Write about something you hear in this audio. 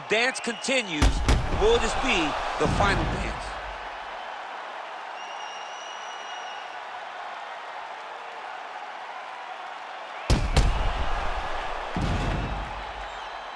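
Heavy blows thud as fighters strike each other.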